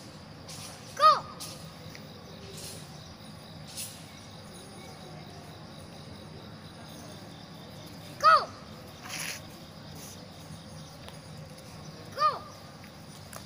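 A young boy calls out in short, high bursts.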